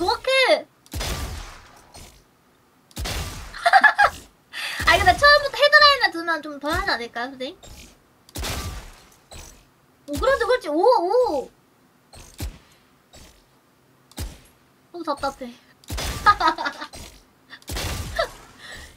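Gunshots fire in sharp single bursts.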